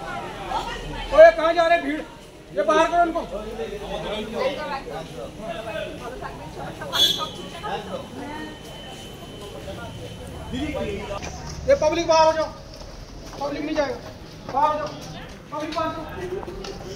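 Several men and women talk with animation nearby.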